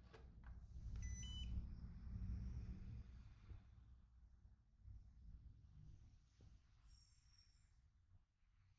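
A robot vacuum beeps.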